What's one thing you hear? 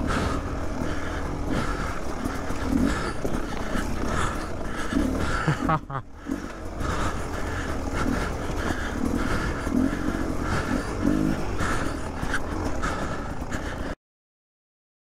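A dirt bike engine revs and putters up close.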